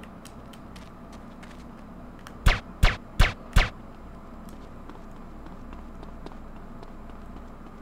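Footsteps tap lightly on hard ground.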